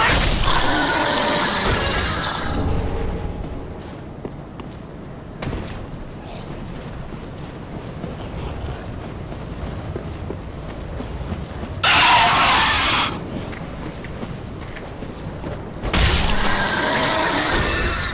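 A sword slashes at a creature.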